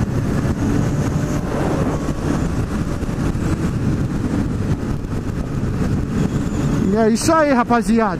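A motorcycle engine drones steadily at speed.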